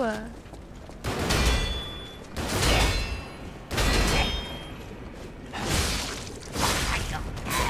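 Game combat sounds clash and crackle in loud bursts.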